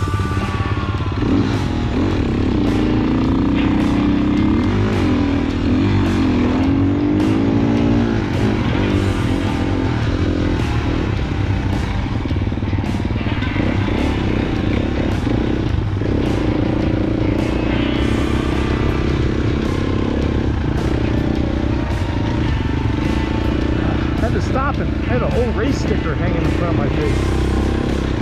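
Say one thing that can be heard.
A dirt bike engine revs and drones up close, rising and falling in pitch.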